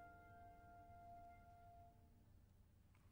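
A vocal group holds a final sung chord that fades away in a large hall.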